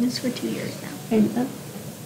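A teenage girl laughs close to a microphone.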